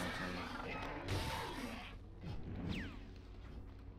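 Electricity crackles and zaps loudly.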